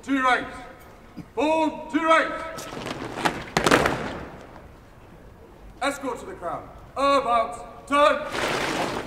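A man shouts drill commands loudly outdoors.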